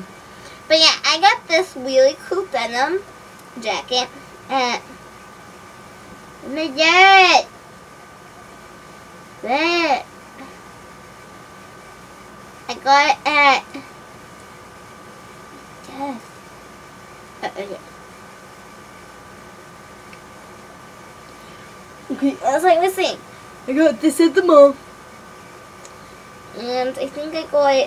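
A young girl talks with animation close to the microphone.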